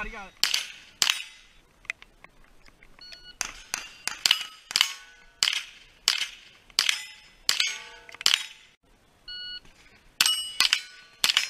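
Bullets strike steel targets with a metallic ring.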